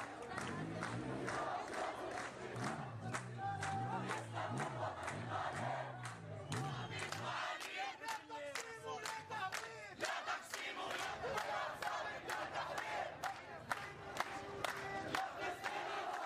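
A crowd claps hands in rhythm.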